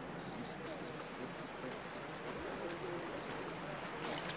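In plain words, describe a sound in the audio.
A crowd of men and women murmurs and talks close by.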